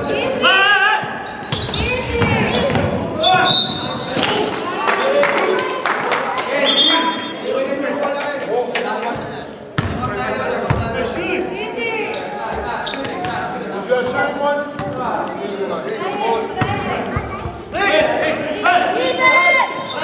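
A basketball bounces on a hard court floor.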